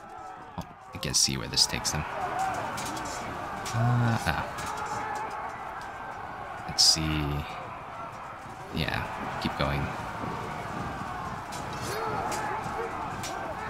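A battle rumbles with clashing weapons and shouting troops.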